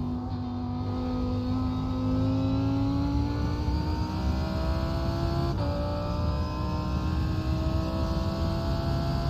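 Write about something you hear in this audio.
A racing car engine roars and climbs steadily in pitch.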